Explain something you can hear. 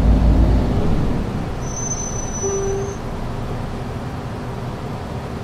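A bus engine rumbles low and steady while idling.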